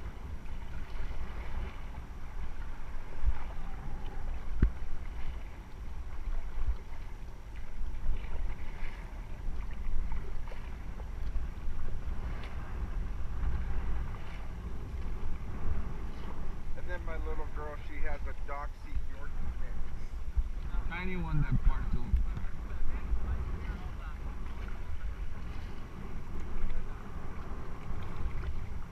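Paddles splash in the water.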